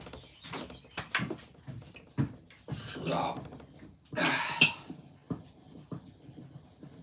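A metal bar knocks and thuds against wood.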